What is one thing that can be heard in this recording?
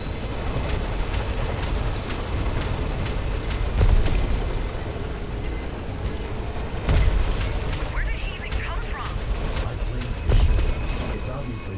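A vehicle engine roars steadily at high speed.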